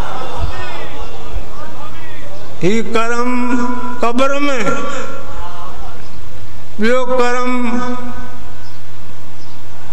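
An elderly man chants in long, drawn-out notes through a microphone.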